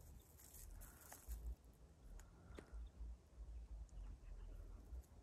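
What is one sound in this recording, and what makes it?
A dog sniffs at the ground up close.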